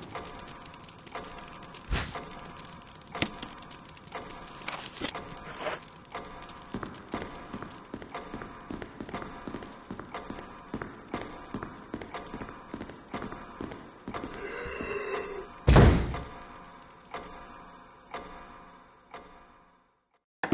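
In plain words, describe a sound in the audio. Footsteps echo across a large hall.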